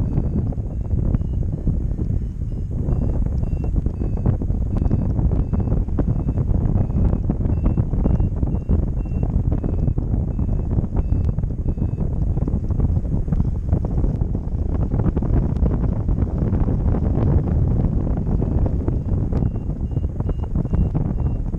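Strong wind buffets a microphone outdoors.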